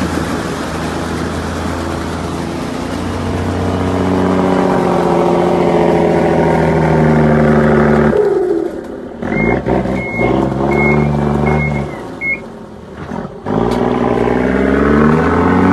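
Tyres spin and churn in thick mud.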